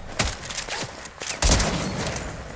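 A pickaxe swings and strikes with sharp whooshes and thuds.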